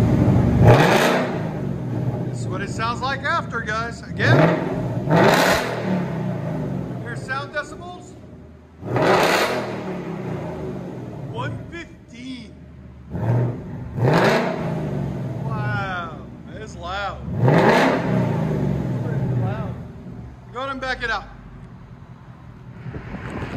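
A car engine idles with a deep, burbling rumble between revs.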